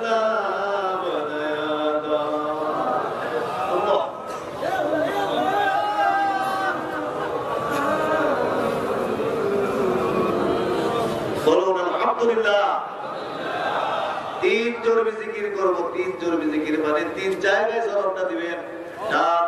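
A man preaches loudly and with passion into a microphone, heard through loudspeakers, chanting in a sing-song voice.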